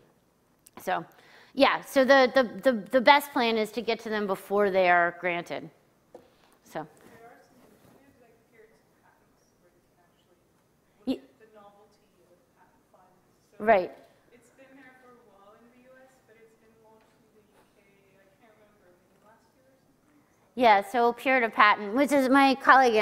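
A woman speaks through a microphone in a large hall, pausing at times.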